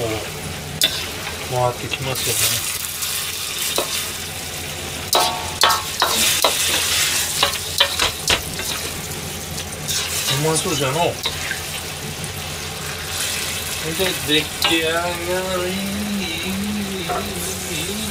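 Food sizzles and crackles loudly in a hot wok.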